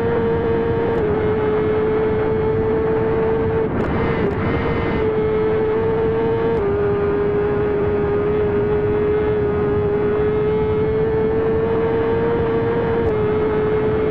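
A motorcycle shifts gears now and then with short clicks.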